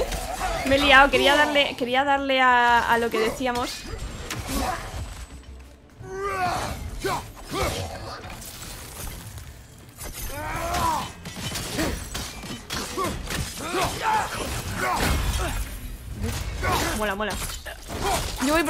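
Metal weapons clash and thud in a fight.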